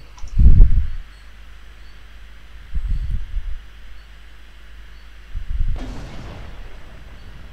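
A tank engine rumbles low in surges.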